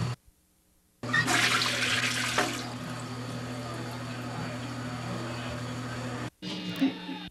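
Water swirls in a toilet bowl.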